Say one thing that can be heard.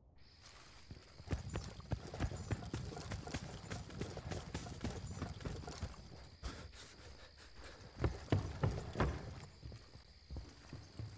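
Footsteps thud quickly on hard ground.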